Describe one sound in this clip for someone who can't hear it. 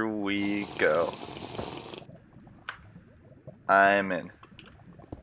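Lava bubbles and pops now and then.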